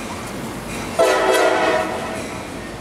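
A train horn blows loudly.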